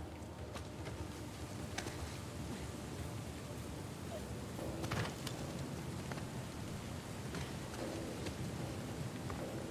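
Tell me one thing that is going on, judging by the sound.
Footsteps run over stone.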